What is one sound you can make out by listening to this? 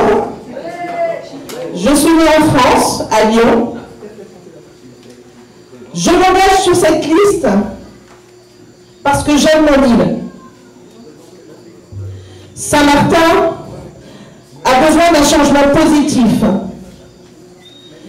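A woman sings loudly into a microphone through a loudspeaker, in phrases with pauses between them.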